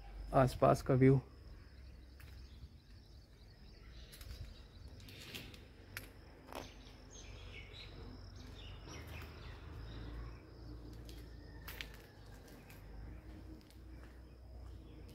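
Footsteps scuff slowly on concrete.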